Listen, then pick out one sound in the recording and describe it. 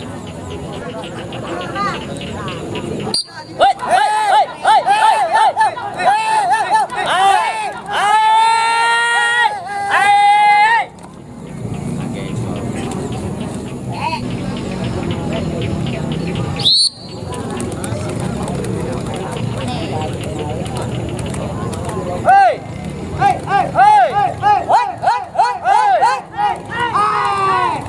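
A crowd murmurs in the open air.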